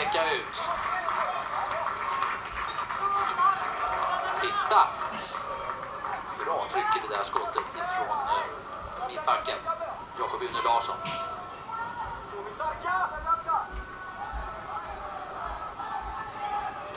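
A large stadium crowd cheers and chants.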